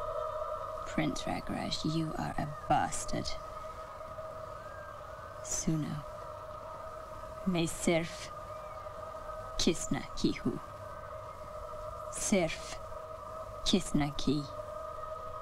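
A young woman speaks in short, upset bursts close by.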